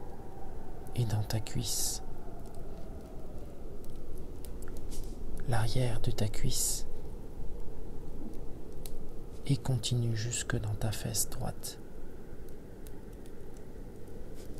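A wood fire crackles and pops nearby.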